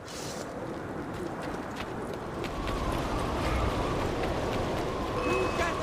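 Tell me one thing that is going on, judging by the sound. Footsteps run across stone.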